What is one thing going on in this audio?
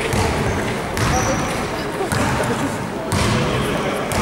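A basketball bounces on a court, echoing in a large hall.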